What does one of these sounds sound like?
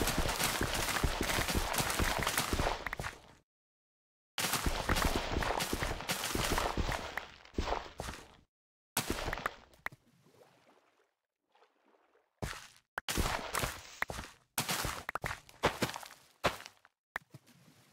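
Dry crops are broken in quick succession with crisp rustling crunches.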